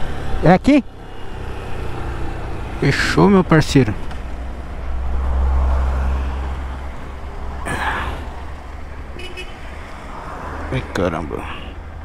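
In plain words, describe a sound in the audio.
A motorcycle engine idles with a low steady rumble that swells briefly.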